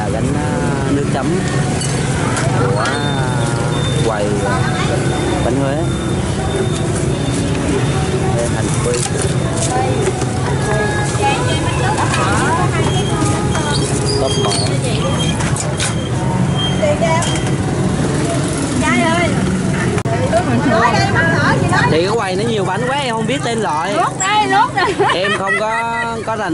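Several women and men chatter close by.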